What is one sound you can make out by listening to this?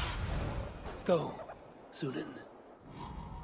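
A raven caws twice.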